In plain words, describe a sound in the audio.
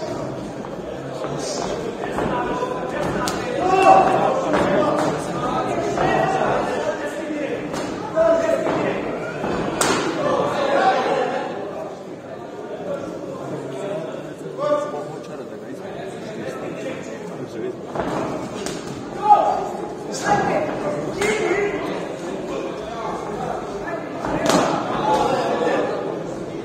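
A crowd of spectators murmurs and shouts in a large echoing hall.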